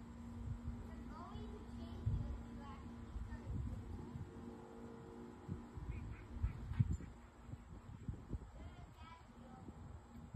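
Geese honk softly in the distance.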